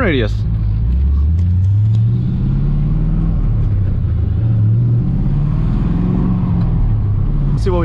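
A sports car engine revs up and climbs in pitch as the car pulls away.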